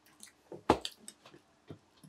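Chopsticks tap against a bowl.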